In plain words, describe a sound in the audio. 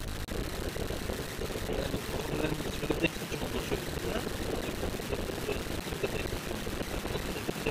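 A young man talks casually close by inside a car.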